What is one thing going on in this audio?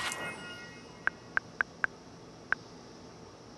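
Short menu clicks tick several times.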